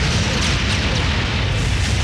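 A spaceship explodes with a loud blast.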